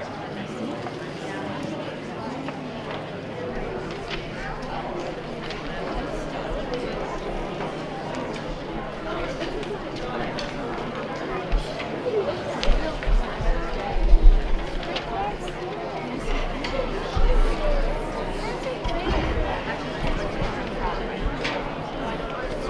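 An audience murmurs and chatters in a large echoing hall.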